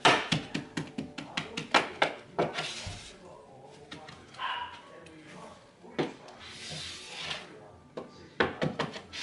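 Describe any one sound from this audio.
Sharp knocks tap quickly against wooden trim, close by.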